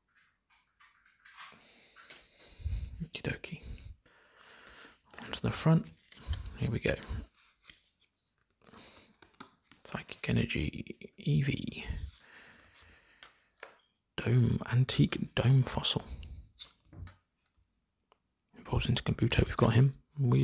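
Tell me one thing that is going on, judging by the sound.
Trading cards slide and flick against one another in someone's hands.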